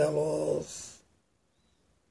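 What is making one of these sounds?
An older man speaks briefly and close up, then falls silent.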